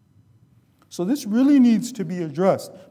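A man speaks calmly into a microphone, in a melodic, chanting voice.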